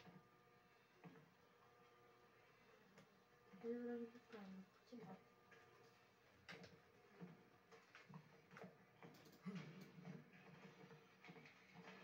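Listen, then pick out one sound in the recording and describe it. A video game plays footsteps and creaks through speakers.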